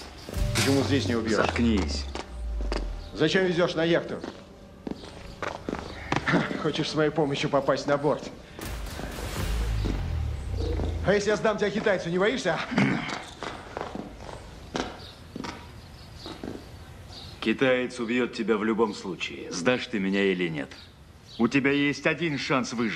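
A man speaks tensely up close.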